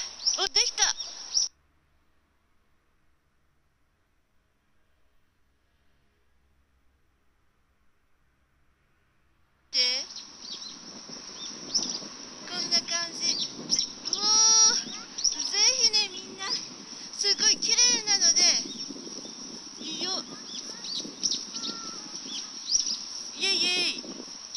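A woman talks with animation close to a phone microphone.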